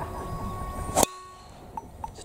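A golf driver strikes a ball off a tee with a sharp crack.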